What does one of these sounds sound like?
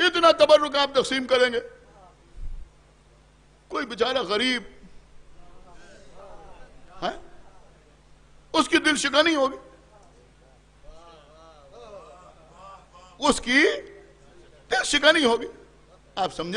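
A middle-aged man speaks passionately into a microphone, in loud bursts with pauses between them.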